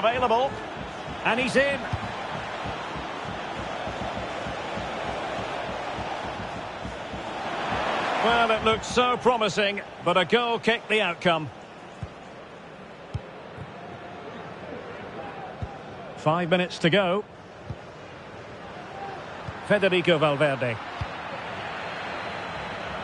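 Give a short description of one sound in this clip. A stadium crowd roars and murmurs steadily, swelling for a moment.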